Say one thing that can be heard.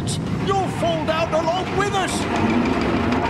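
A man speaks with a gruff, animated voice.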